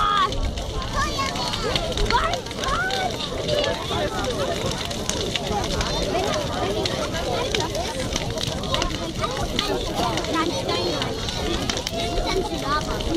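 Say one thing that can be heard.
A large bonfire crackles and pops.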